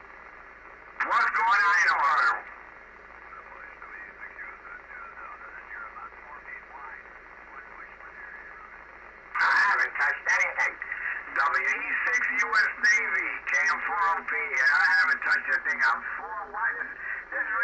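Garbled, warbling signals burst loudly from a radio loudspeaker as it is tuned.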